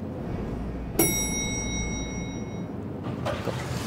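An elevator chime rings once.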